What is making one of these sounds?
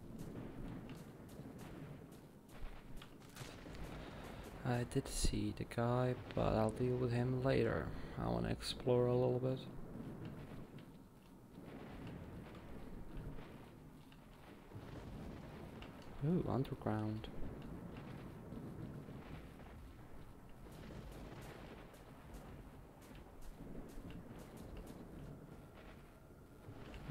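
Footsteps fall on a concrete floor.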